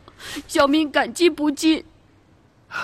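A young man speaks gratefully in a cartoon voice.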